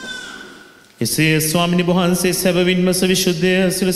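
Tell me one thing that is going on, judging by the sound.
A man sings loudly through a microphone in an echoing hall.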